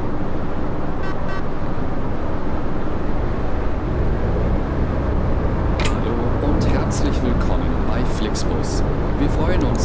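A bus engine hums steadily as the bus drives through traffic.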